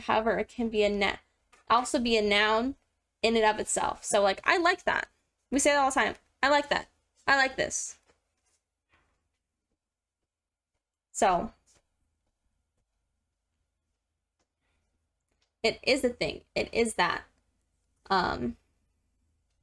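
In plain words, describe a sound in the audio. A young woman speaks calmly into a microphone, pausing now and then.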